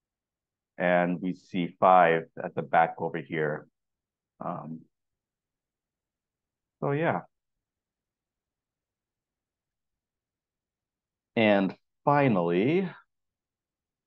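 A man speaks calmly through a microphone in short phrases, with pauses.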